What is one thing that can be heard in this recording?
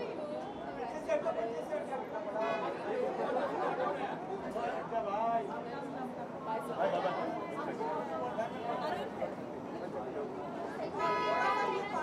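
A crowd of men and women chatter all around.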